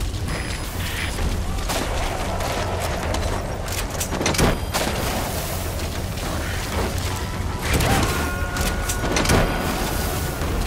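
Footsteps crunch over dry grass and dirt.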